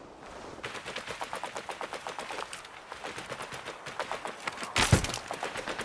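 Footsteps fall on stone.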